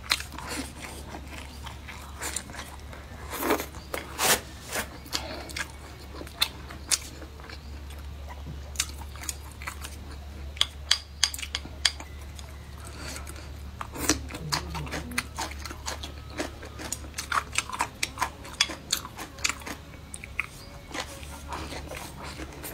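A young woman slurps food close to the microphone.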